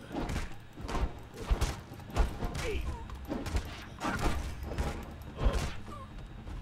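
Heavy blows of a weapon strike flesh in quick succession.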